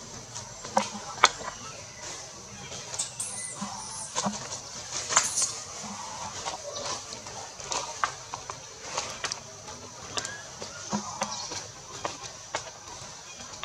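A monkey rustles leaves and branches as it shifts in a tree.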